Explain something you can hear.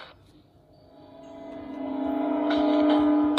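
A tablet plays game music through its small speaker.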